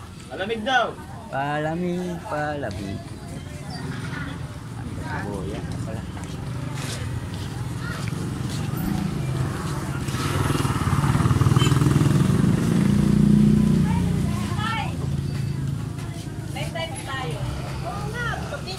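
A busy outdoor market murmurs with a steady low rumble.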